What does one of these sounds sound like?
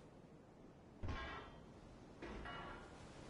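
A heavy metal lever is pulled with a clunk.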